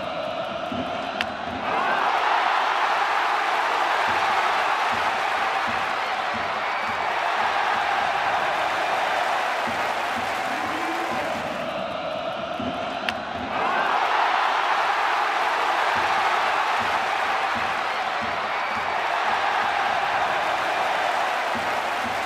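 A large crowd cheers and roars loudly in a stadium.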